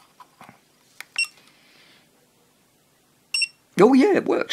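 An electronic tester beeps a few times.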